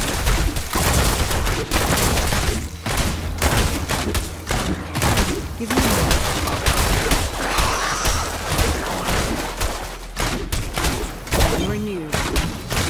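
Fiery spells burst and crackle again and again.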